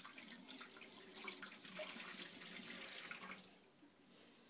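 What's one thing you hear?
Water runs from a tap into a metal sink.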